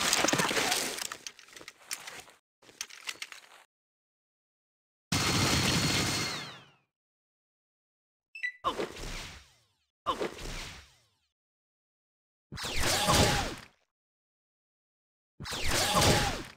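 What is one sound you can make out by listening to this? Bursts of gunfire ring out in short, sudden volleys.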